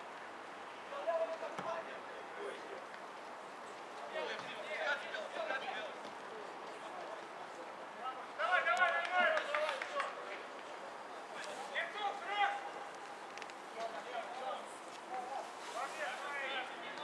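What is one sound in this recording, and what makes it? Men shout to each other across an open field, heard from a distance.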